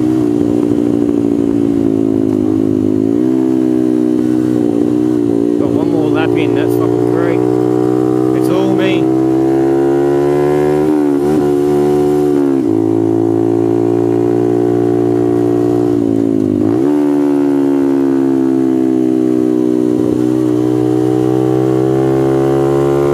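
A motorcycle engine roars loudly up close, its pitch rising and falling as it shifts gears.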